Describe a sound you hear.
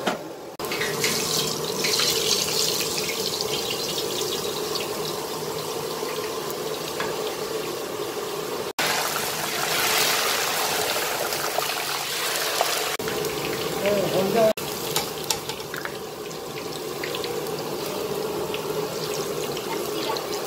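Drops of batter sizzle and crackle in hot oil.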